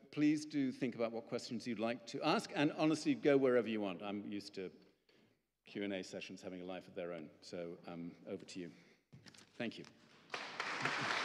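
A middle-aged man speaks calmly into a microphone in a large echoing room.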